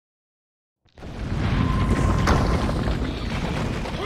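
Debris crashes and rumbles down.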